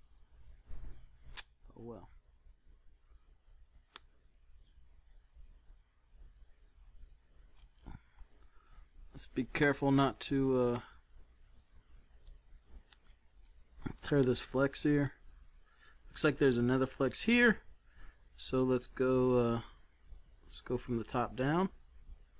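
Metal tweezers click and tap against a circuit board.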